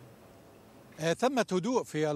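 A man speaks over a remote link.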